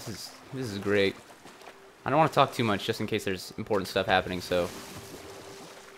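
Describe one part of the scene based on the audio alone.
An oar splashes through flowing water.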